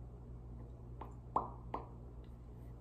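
A young woman makes wet clicking mouth sounds close to a microphone.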